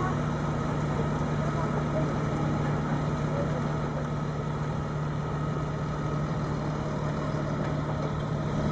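A tractor engine idles with a steady low hum.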